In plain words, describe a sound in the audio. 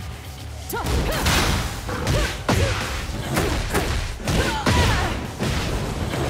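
Punches and kicks land with heavy thuds in a fighting game.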